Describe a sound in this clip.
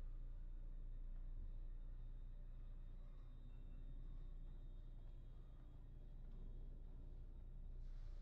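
Footsteps walk slowly across a hard floor.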